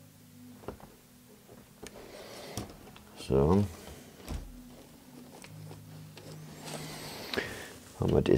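Small clicks and taps come from a tool on wiring.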